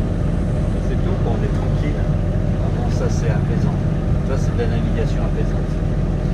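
A man talks calmly close by, outdoors in wind.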